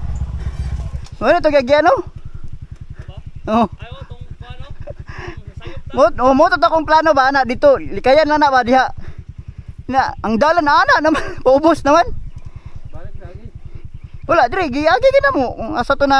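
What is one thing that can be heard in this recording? A motorbike engine idles with a low, even putter.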